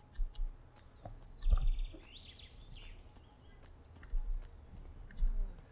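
Footsteps thud through undergrowth.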